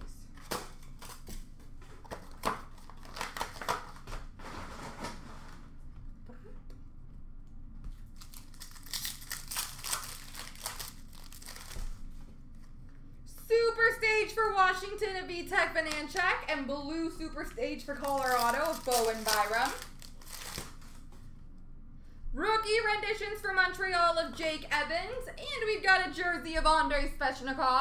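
Plastic card packs rustle and crinkle as hands sort through them.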